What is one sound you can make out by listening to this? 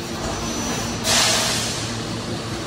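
Compressed air hisses in a sharp burst.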